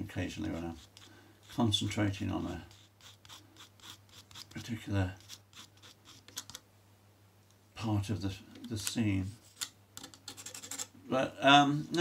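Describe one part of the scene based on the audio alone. A pencil scratches lightly on a board.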